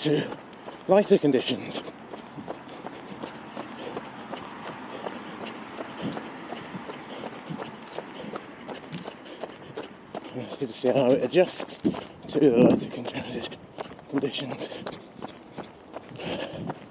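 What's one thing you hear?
Footsteps crunch on a leafy path.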